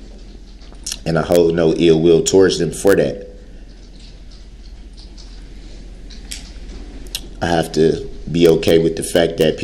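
A man speaks with long pauses.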